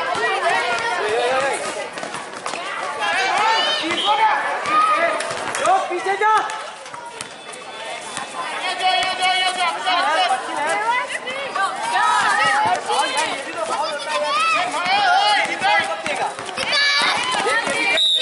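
A basketball bounces on hard ground.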